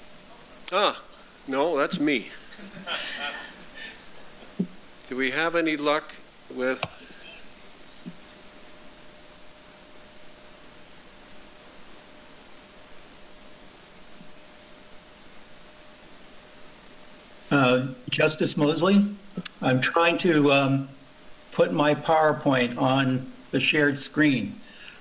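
An elderly man speaks calmly into a microphone in a large room.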